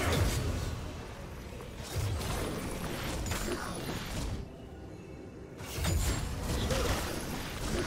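Video game spell effects whoosh and crackle in a busy battle.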